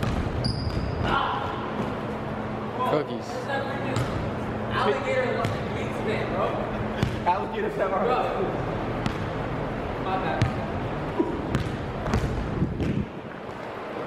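A young man talks casually in a large echoing gym.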